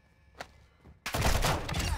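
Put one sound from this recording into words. A heavy wooden door swings open.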